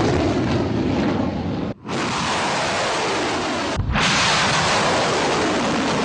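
A rocket engine roars loudly with a rushing hiss.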